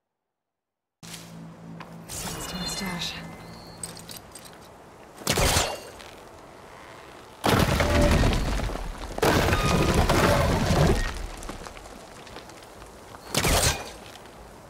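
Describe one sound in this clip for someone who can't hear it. Footsteps rustle through grass and brush.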